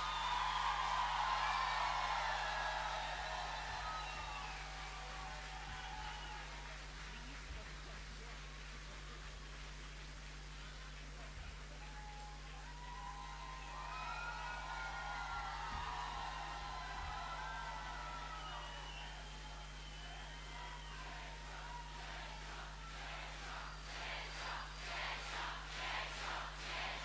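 A large crowd cheers and whistles in a big hall.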